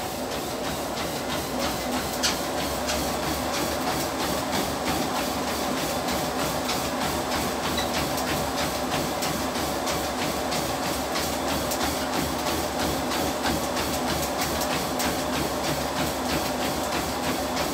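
Feet pound quickly and rhythmically on a treadmill belt.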